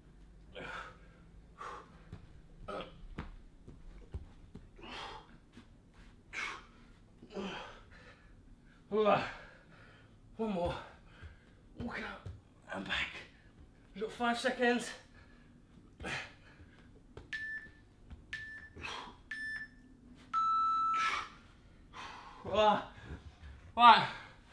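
A man exhales sharply and grunts with effort, close by.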